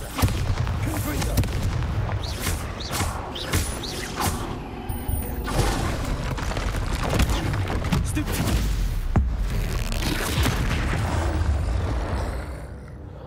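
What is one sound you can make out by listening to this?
A troll roars and grunts.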